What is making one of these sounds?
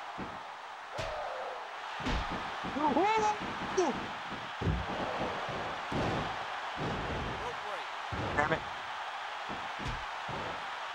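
Thuds and slams of blows ring out in a video game.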